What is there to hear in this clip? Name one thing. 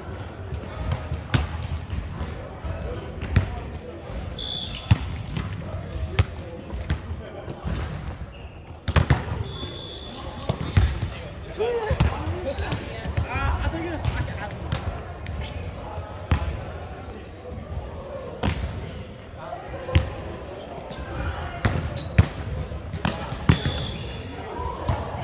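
A volleyball is struck with sharp slaps, echoing in a large hall.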